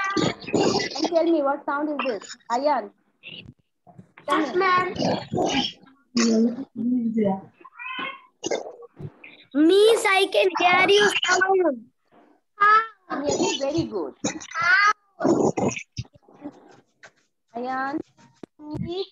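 A young child repeats words over an online call.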